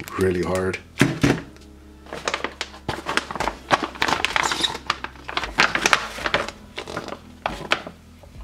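Plastic packets crinkle and rustle as hands handle them.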